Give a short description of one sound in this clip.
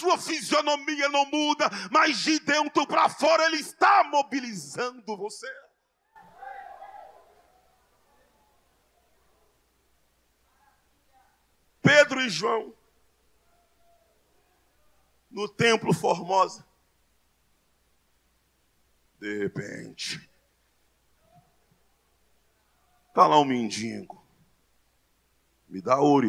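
A man preaches loudly and with fervour through a microphone and loudspeakers, in short bursts with pauses.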